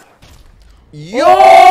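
A young woman exclaims loudly close to a microphone.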